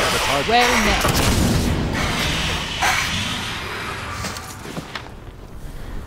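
Magic spells whoosh and crackle in bursts.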